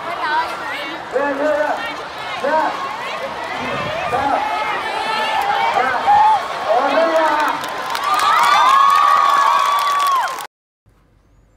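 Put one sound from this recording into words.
A large crowd of young people cheers and shouts.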